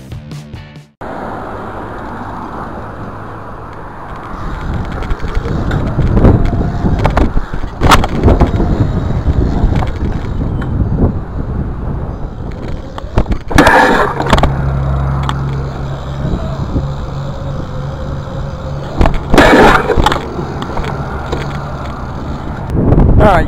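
Bicycle tyres roll over concrete.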